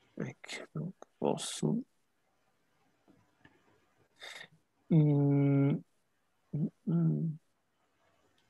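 A man speaks in short phrases over an online call.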